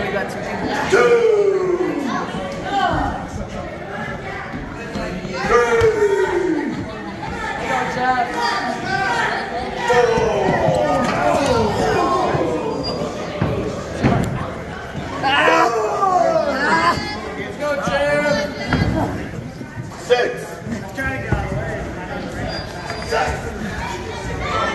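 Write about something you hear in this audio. A crowd of men and women cheers and shouts nearby.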